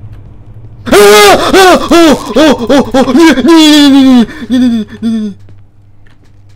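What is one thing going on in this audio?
A young man screams loudly and long into a close microphone.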